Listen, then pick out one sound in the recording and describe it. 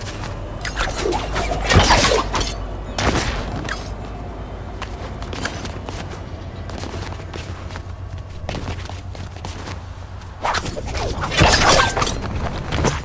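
A grappling line whooshes and snaps.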